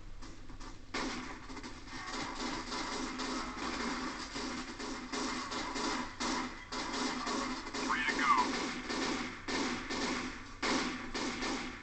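Rapid gunfire from a video game rattles through a loudspeaker.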